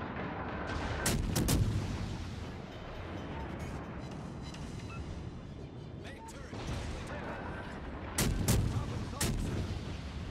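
Naval guns fire in loud booming salvos.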